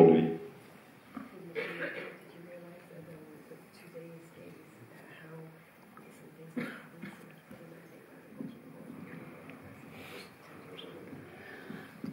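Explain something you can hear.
A woman speaks quietly, heard faintly from a distance.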